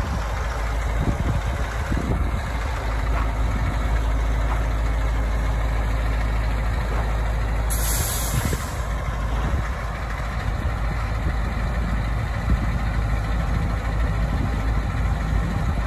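Big tyres crunch over gravel.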